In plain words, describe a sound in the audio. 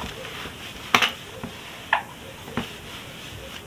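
A marker taps against a whiteboard.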